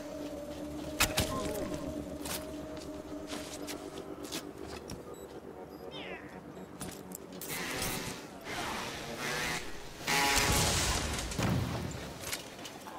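Gunshots crack in quick bursts during a fight.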